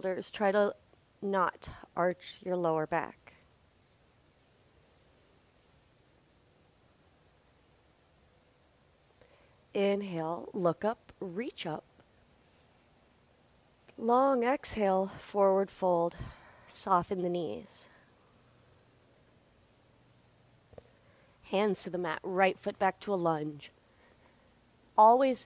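A woman speaks calmly and clearly into a close microphone, in short phrases with pauses.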